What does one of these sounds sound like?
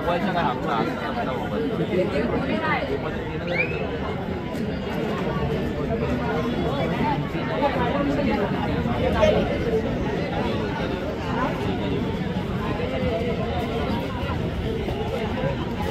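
A crowd of spectators chatters and cheers loudly throughout.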